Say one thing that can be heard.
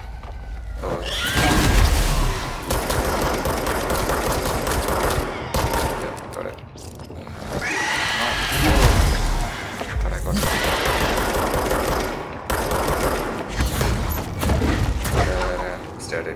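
Heavy gunfire bursts out in rapid blasts.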